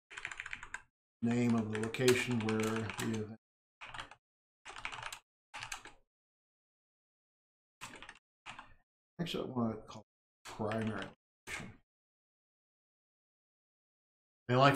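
An older man talks calmly into a close microphone, in short phrases with pauses.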